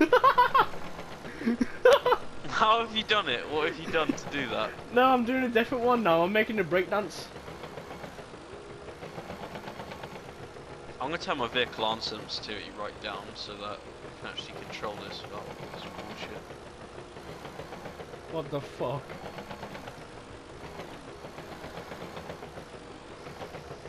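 An excavator engine hums steadily.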